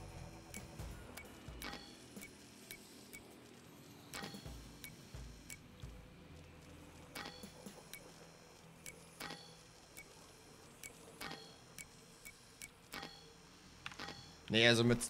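A combination dial clicks as it turns.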